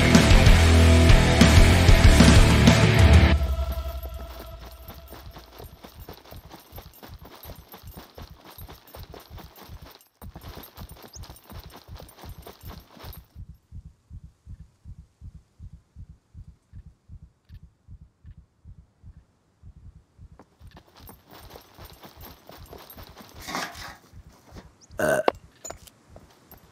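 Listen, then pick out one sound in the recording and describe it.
Footsteps thud in a quick, even rhythm on a hard walkway.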